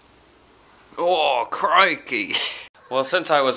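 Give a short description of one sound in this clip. A young man speaks loudly and with animation, very close to the microphone.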